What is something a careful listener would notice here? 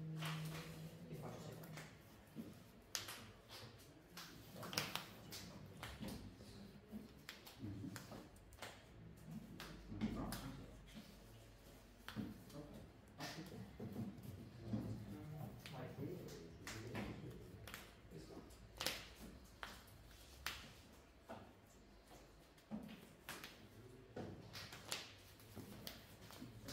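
Playing cards tap and slide onto a soft mat.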